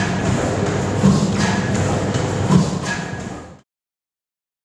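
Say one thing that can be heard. A large engine chugs and thumps steadily in an echoing hall.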